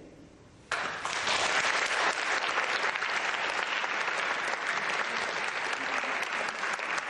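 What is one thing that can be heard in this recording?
An audience applauds loudly in a large room.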